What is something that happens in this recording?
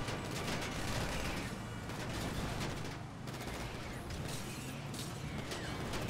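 A large truck engine rumbles steadily while driving.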